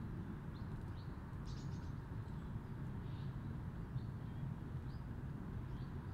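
A small bird chirps nearby.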